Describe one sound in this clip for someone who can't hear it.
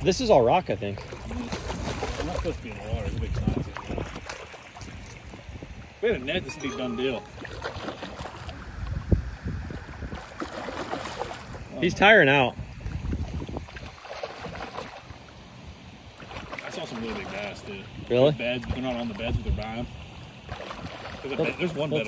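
A dog paddles and splashes through water.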